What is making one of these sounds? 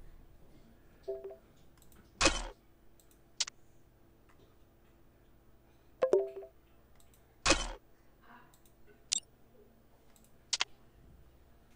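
Short electronic chimes sound as game notifications pop up.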